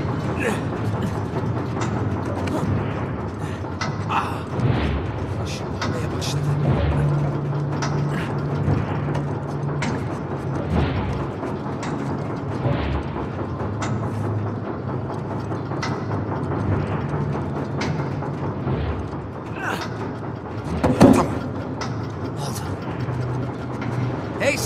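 A man grunts with effort as he climbs.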